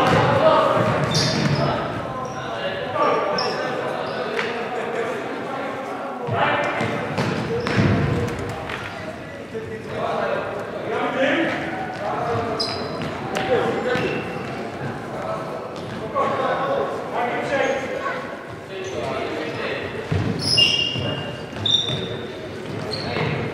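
A ball thumps off a player's foot.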